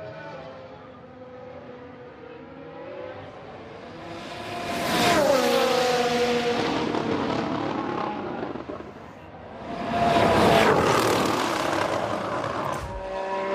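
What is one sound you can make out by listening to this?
A racing car engine screams past at high speed, its pitch dropping as it goes by.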